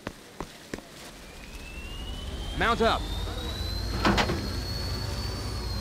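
A hovering vehicle's engine hums and rises in pitch.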